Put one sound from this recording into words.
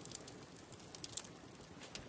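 Food sizzles on a grill over a crackling fire.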